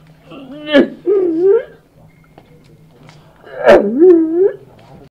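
An elderly man sobs and wails loudly in bursts.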